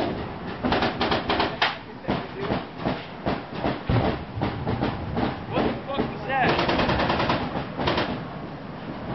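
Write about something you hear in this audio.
A man speaks urgently close by.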